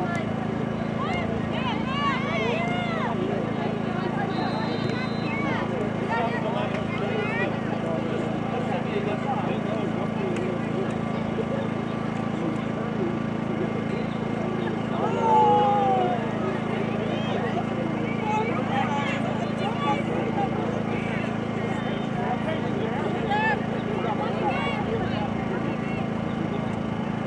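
Young female players shout and call to each other across an open field.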